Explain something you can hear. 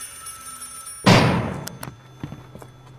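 A heavy metal barred door clangs shut and rings.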